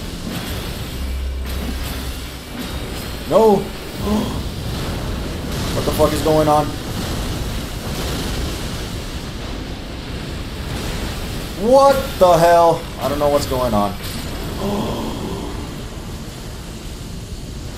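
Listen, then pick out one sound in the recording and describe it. Game combat sounds of magic blasts and sword clashes play steadily.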